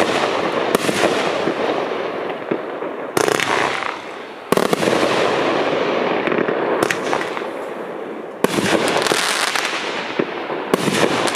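Fireworks crackle and fizzle after each burst.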